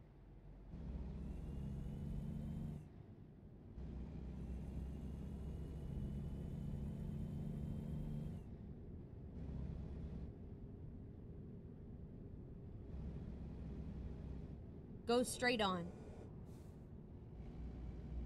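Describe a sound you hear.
A truck engine rumbles, revving up and easing off again and again.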